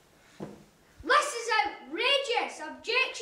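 A young boy speaks loudly and clearly nearby.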